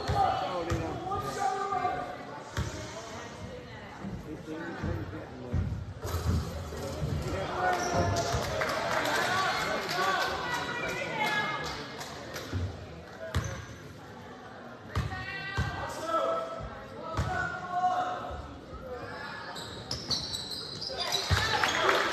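Spectators chatter and call out, echoing in a large gym.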